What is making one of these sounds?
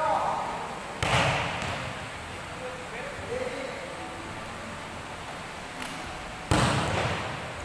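A ball is kicked hard with a sharp thud that echoes through a large hall.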